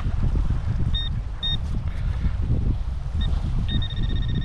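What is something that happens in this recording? A metal detector gives short high beeps.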